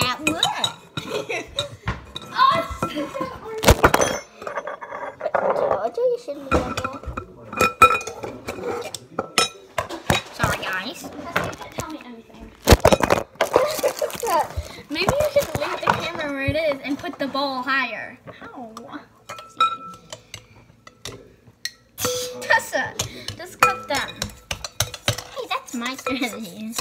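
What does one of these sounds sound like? Metal utensils clink and scrape against a glass bowl.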